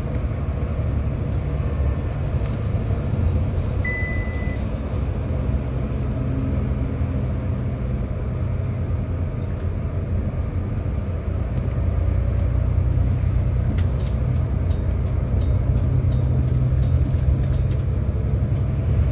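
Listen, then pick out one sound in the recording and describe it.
Interior panels of the bus rattle and click.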